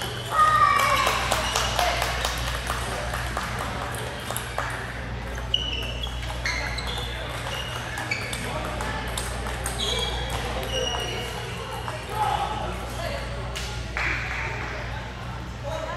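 Sneakers squeak sharply on the floor.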